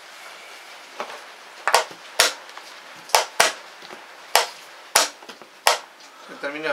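Wooden chess pieces clack sharply onto a board in quick succession.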